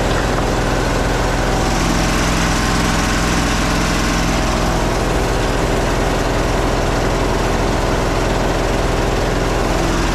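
Water rushes through a hose into a drain.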